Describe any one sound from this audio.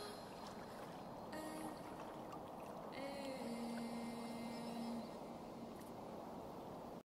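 Water laps gently at a pond's edge.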